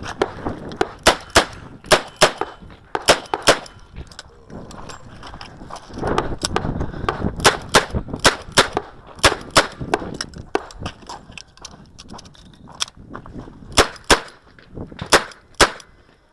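Revolver shots ring out loudly, one after another in quick bursts, outdoors.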